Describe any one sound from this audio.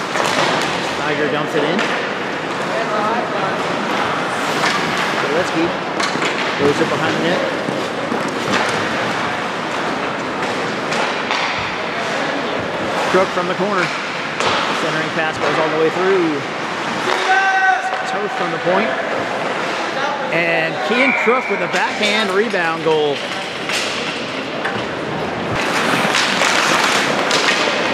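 A crowd of spectators shouts and cheers in a large echoing rink.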